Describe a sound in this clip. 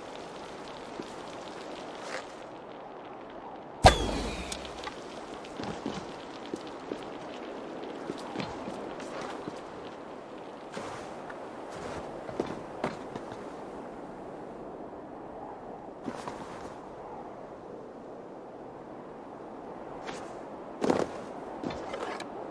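Hands and feet scrape and knock on stone while climbing.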